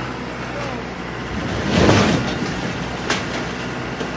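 A tall silo collapses with a loud rumbling crash.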